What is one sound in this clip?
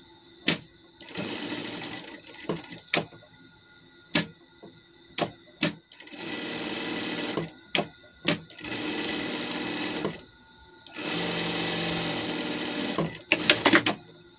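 A sewing machine runs in quick bursts, whirring as it stitches.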